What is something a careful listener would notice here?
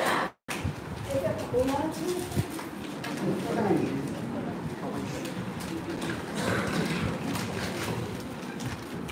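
Men and women talk quietly nearby.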